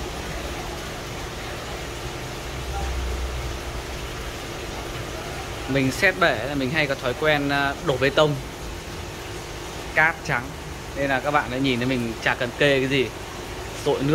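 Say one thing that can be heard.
Water trickles softly from a hose into a tank.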